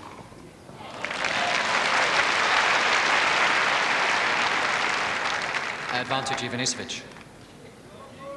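A large crowd applauds loudly and then dies down.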